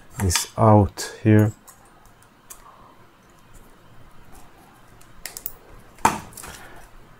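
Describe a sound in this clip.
Pliers snip with a sharp click.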